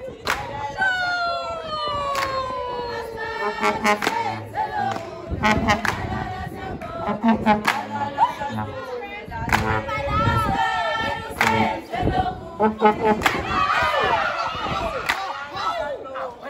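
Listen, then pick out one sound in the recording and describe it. A group of children clap their hands in rhythm.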